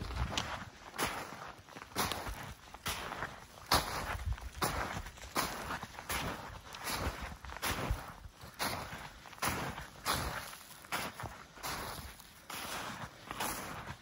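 Footsteps crunch steadily through snow.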